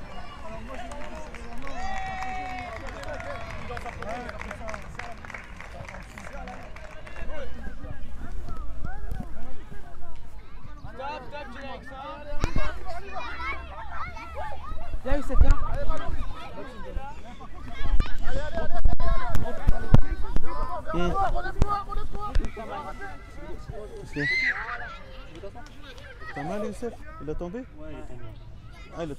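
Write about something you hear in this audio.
Young children shout and chatter outdoors.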